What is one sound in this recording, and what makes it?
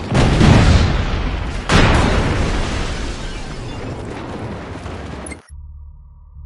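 Loud explosions boom and rumble, then slowly die away.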